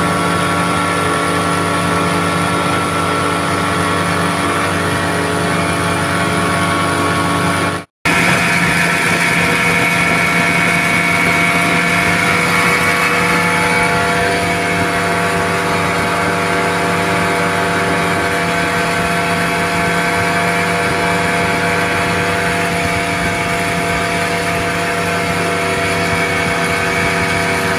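Water rushes and splashes against a boat's hull.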